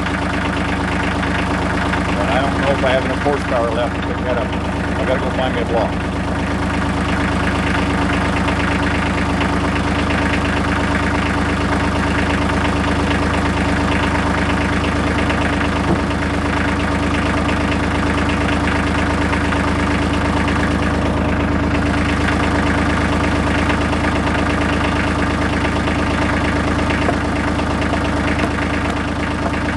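A tractor engine runs steadily close by.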